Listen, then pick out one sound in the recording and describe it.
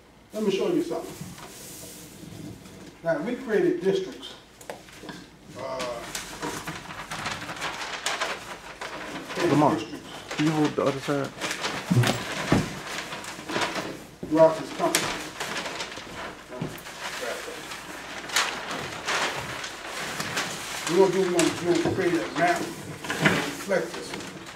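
A man speaks into a microphone over a loudspeaker in a room, explaining calmly.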